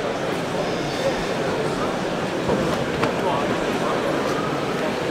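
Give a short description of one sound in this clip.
Many people talk at once in a large, echoing hall.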